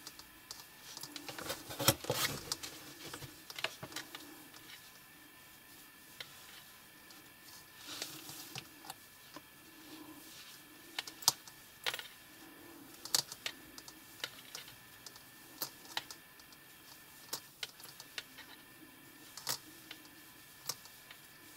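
A metal crochet hook clicks and taps while working yarn.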